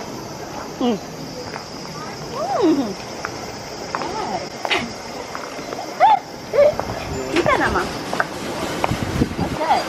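A young woman talks and laughs cheerfully close by.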